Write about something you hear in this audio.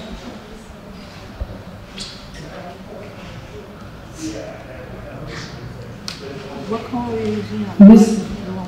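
Small objects click and tap on a table.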